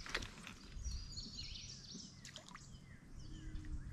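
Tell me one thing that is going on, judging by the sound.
A fishing reel clicks as line is reeled in.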